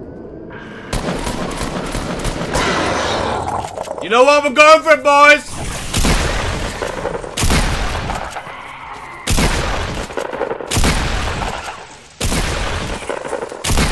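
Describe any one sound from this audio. Gunshots fire rapidly in short bursts.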